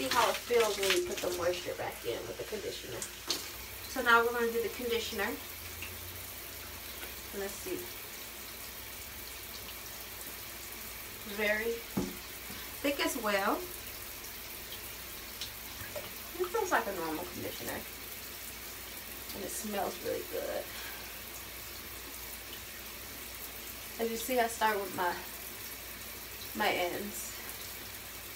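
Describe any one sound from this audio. A young woman talks calmly close by, in a small echoing room.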